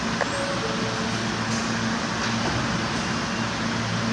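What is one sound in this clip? Subway train doors slide shut with a thud.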